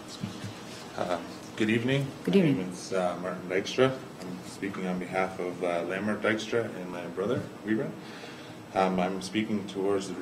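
A second man speaks into a microphone.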